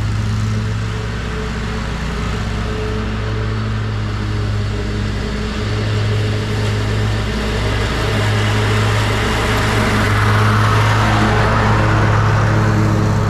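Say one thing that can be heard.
A leaf blower engine drones steadily close by.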